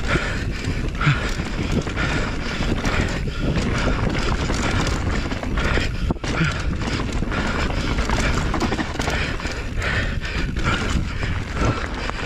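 A bicycle's frame and chain rattle over bumps.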